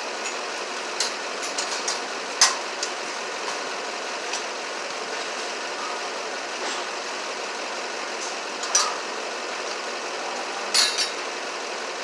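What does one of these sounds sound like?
Small tools click and tap against a metal fitting close by.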